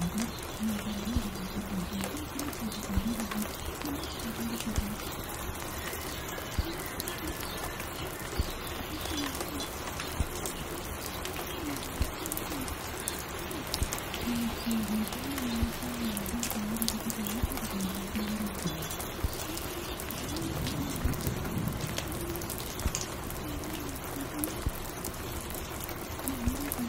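Music plays from a record player.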